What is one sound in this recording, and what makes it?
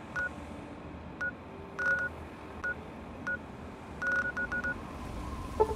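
Short electronic beeps chirp in quick bursts.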